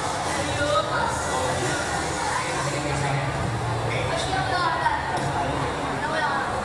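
A crowd of people chatters in an echoing hall.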